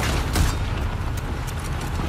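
A horse gallops with pounding hooves.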